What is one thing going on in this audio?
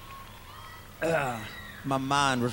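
A man sings loudly through loudspeakers.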